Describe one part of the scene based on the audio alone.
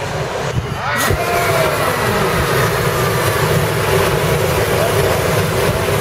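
A gas burner roars.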